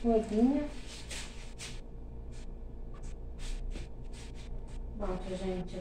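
A cloth rubs and wipes across a surface in short strokes.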